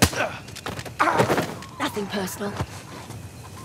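A man drops down and lands with a heavy thud.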